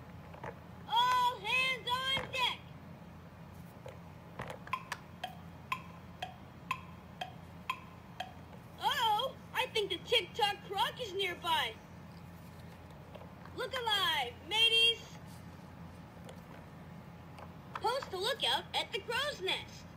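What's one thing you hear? A toy plays warbling electronic sounds in bursts.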